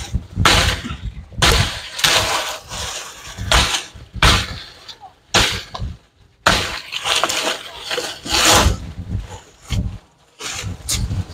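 Dry leaves and stems rustle and crackle as they are pulled aside.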